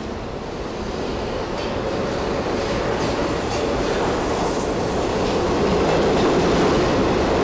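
A train rolls into a station with a low rumble that grows steadily louder.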